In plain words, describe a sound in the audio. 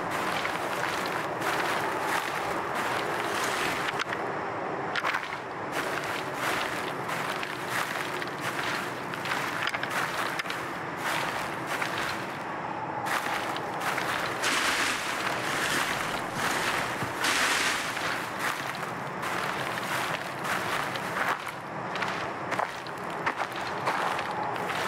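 A man talks steadily into a close microphone.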